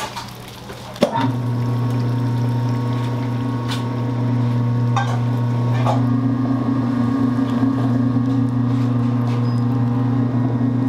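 A mixing machine hums steadily as it churns dough.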